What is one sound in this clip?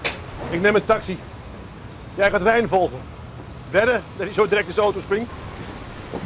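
A younger man talks outdoors.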